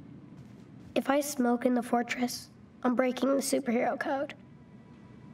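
A young boy speaks calmly, close by.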